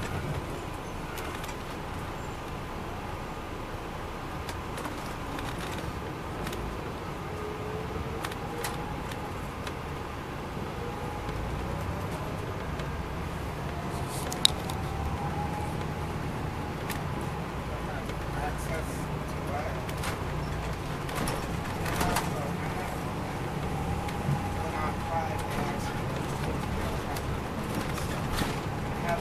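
A diesel coach bus's interior panels rattle and creak.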